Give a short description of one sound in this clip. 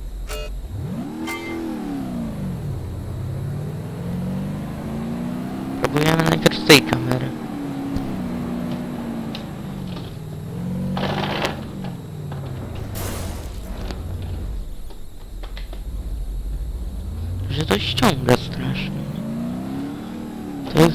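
A car engine revs up and down as it speeds along.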